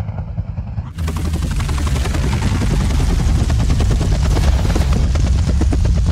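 An aircraft's engines roar and its rotors whir loudly close by.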